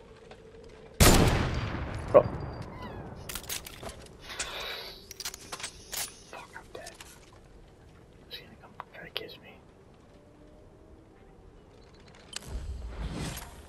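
Rifle shots crack loudly and echo away.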